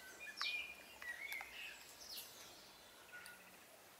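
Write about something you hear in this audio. Tea pours from a teapot into a glass.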